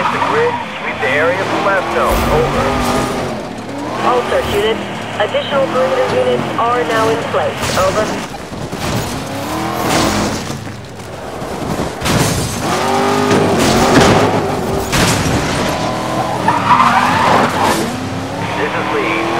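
Tyres screech as a car drifts around bends.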